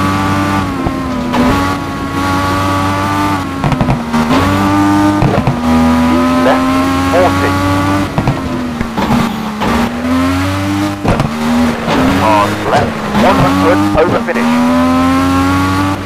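A rally car engine revs hard, rising and falling with gear changes.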